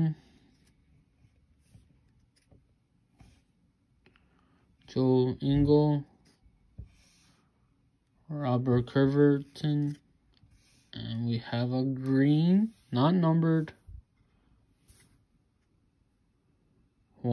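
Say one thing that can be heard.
Trading cards rustle and slide against each other in a hand.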